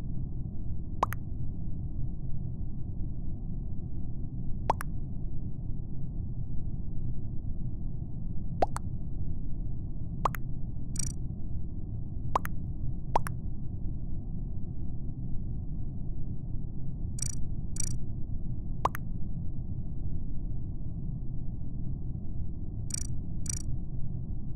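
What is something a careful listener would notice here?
Short electronic clicks and pops sound now and then.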